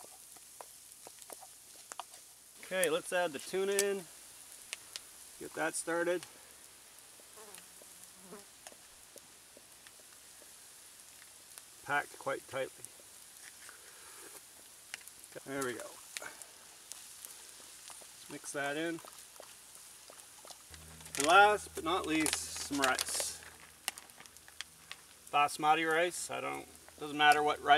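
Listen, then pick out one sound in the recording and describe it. Food sizzles softly in a pan over a wood fire.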